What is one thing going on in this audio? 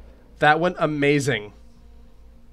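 A young man speaks animatedly into a close microphone.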